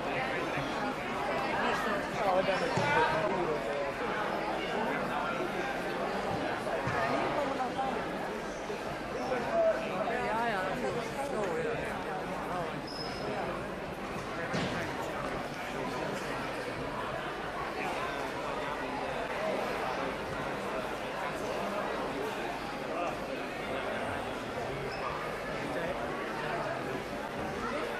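Children hit a shuttlecock with badminton rackets, making light taps.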